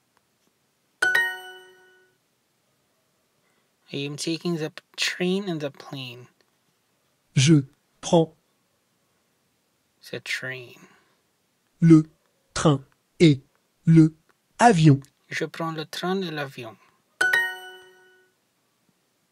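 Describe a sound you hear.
A bright chime rings out twice, then fades.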